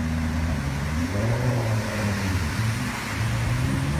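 Floodwater sprays and churns around a moving car.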